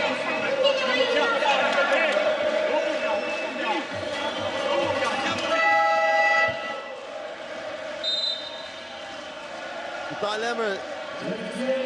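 A large crowd cheers and chatters in a big echoing arena.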